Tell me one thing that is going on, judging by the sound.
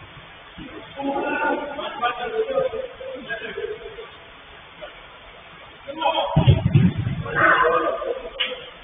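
Young men shout to each other from a distance in a large echoing hall.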